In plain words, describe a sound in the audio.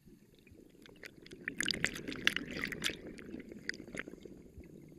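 Air bubbles rumble and crackle underwater in bursts.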